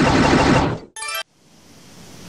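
A video game menu blips as a selection changes.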